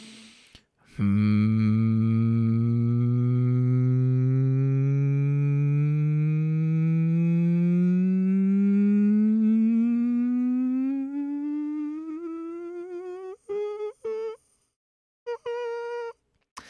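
A young man hums a long, steady note that slowly rises in pitch.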